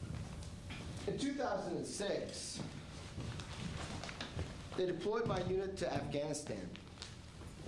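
A man speaks loudly in an echoing room.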